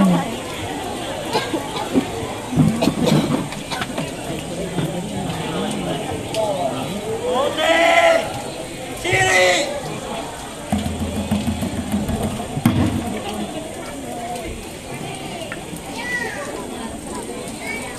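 A hand drum beats.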